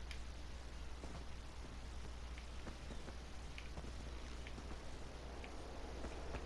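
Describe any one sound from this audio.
Footsteps tread on wooden boards.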